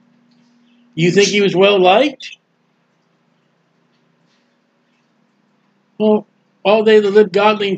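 A middle-aged man speaks calmly into a close microphone, reading out in short bursts.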